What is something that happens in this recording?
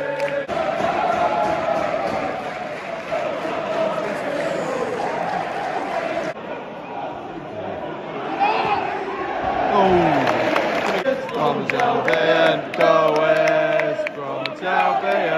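A large stadium crowd sings and chants loudly, echoing in the open air.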